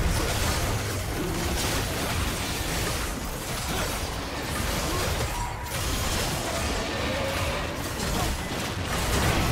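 Video game spell effects and weapon hits crackle and clash in a busy fight.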